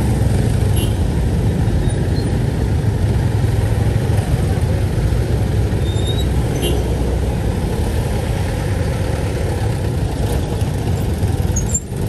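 A truck engine hums nearby.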